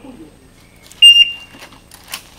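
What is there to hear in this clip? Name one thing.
An electronic shot timer beeps.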